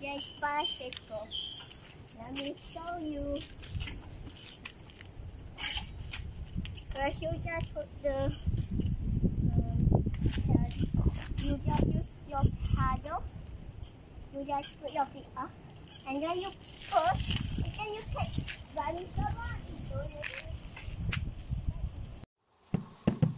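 A young girl talks cheerfully close by.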